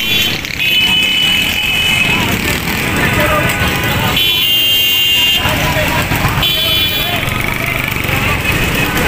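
Motorcycle engines rumble past on a busy street.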